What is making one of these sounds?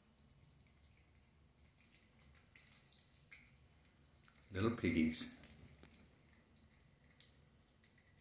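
Cats chew and lap wet food close by.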